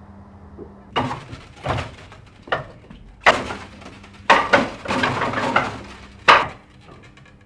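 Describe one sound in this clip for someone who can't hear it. Hands knock sharply against a wooden training dummy.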